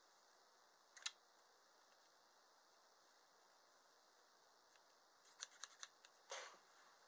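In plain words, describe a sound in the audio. Scissors snip close by.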